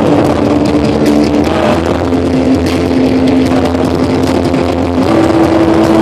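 A live band plays loudly through speakers in a large hall.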